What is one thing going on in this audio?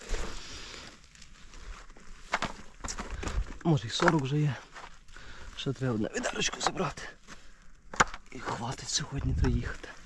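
A plastic crate of berries scrapes and rattles as it is lifted.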